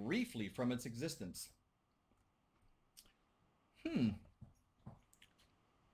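A middle-aged man speaks calmly through a computer microphone.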